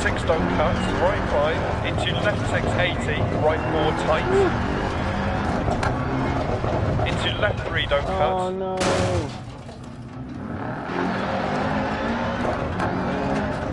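Tyres crunch over gravel.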